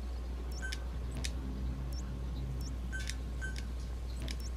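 Short electronic blips chirp in quick succession.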